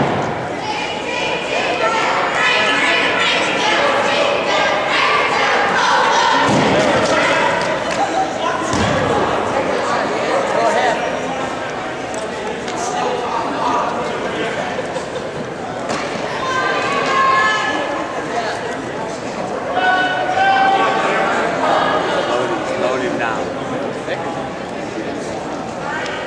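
A crowd of spectators shouts and cheers loudly in an echoing gym.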